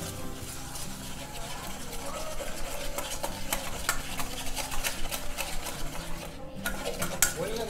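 A wire whisk clicks and scrapes quickly against a metal bowl.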